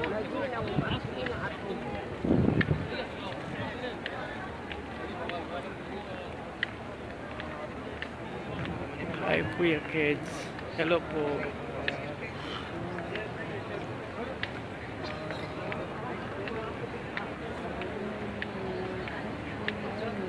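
A large crowd murmurs and chatters all around, outdoors.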